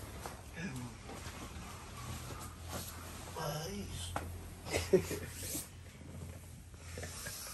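A man snores loudly while asleep.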